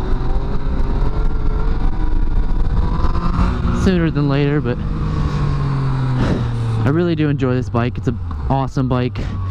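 A motorcycle engine roars and revs up in repeated rising bursts.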